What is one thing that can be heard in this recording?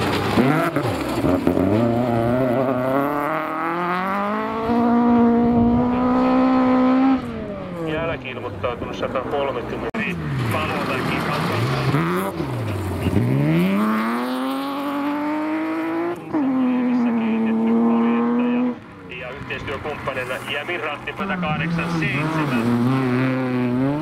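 A rally car engine revs hard and roars.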